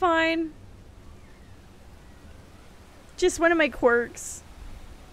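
A young woman exclaims briefly into a close microphone, with animation.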